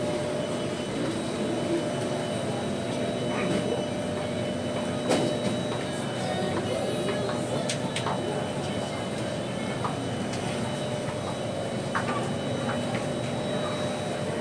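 A train's interior hums steadily with a constant whine.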